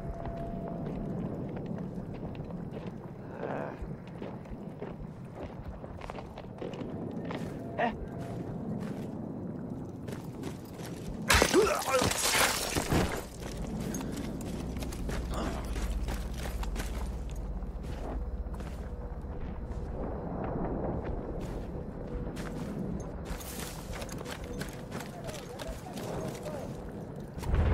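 Footsteps crunch softly on gravel.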